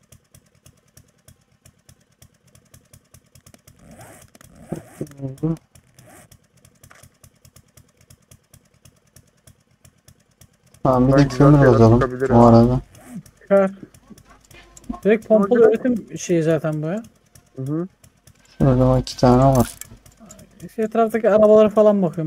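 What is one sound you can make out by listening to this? A chainsaw engine idles with a steady putter.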